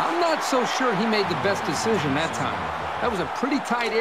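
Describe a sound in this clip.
A stadium crowd cheers and roars steadily.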